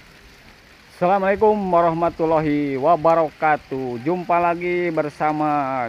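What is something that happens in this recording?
A man talks with animation close to a phone's microphone.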